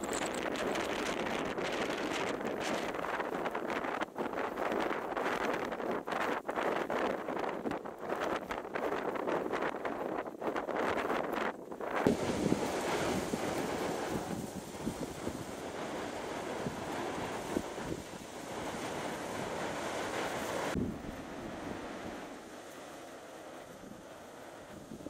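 Waves crash and roar against rocks below.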